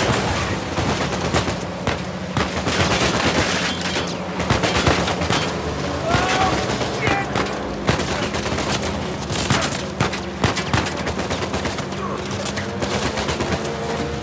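Vehicle engines roar and rumble at speed.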